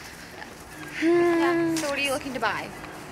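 Young women laugh and squeal close by.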